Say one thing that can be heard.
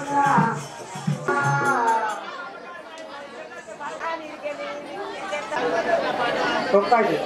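A crowd of women chatters and murmurs nearby.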